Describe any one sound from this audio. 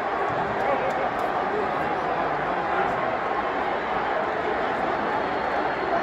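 A large crowd cheers and roars steadily in a vast echoing arena.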